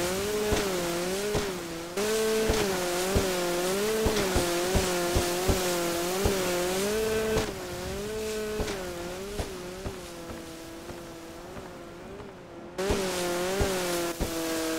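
A jet ski hull slaps and thumps on waves, with spray hissing.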